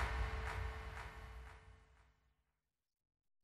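Small waves lap gently outdoors.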